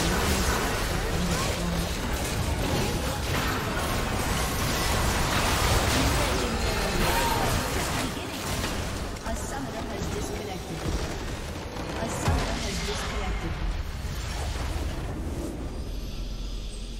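Magic blasts crackle and boom in a busy fight.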